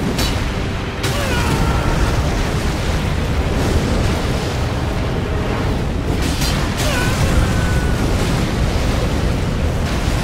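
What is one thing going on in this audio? Explosions burst with heavy booms.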